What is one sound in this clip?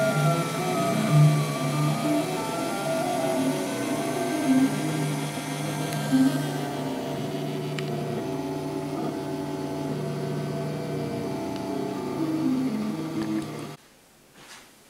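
Stepper motors whir in shifting, humming tones.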